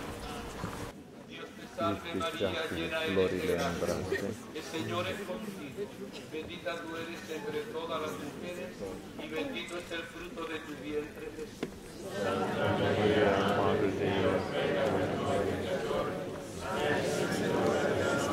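A crowd of people murmurs and chatters nearby.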